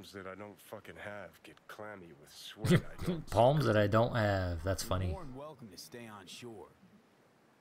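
A man speaks calmly and closely.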